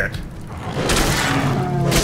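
Beasts snarl and growl in a fight.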